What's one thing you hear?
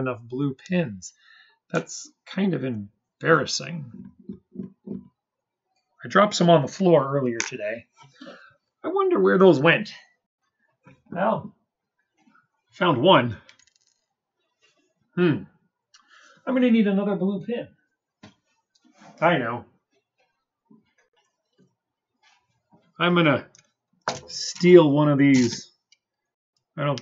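A young man talks calmly into a close microphone, in bursts with pauses.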